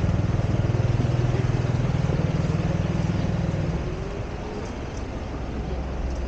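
A truck's engine rumbles nearby.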